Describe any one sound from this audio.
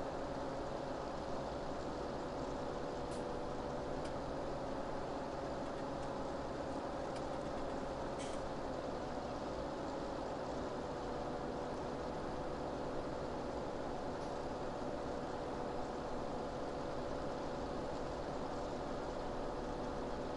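A tractor engine hums steadily.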